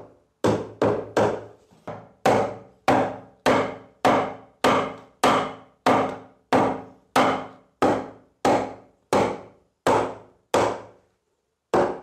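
A hammer taps on wooden floorboards.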